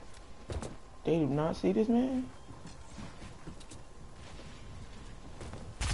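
Quick footsteps patter on grass and dirt.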